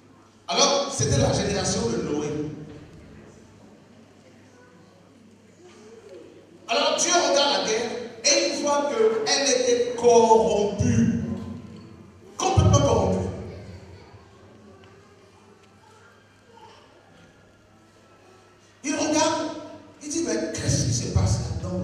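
A man preaches with animation into a microphone, in bursts with long pauses, heard through a loudspeaker in an echoing hall.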